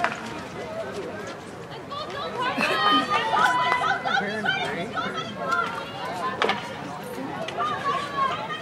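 Girls shout and call out to each other outdoors.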